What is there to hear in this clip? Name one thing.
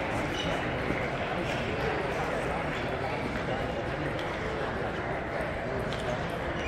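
A crowd murmurs in the background of a large echoing hall.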